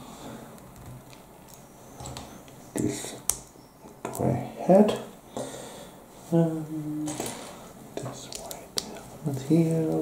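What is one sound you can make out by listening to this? Small plastic toy pieces click and snap together.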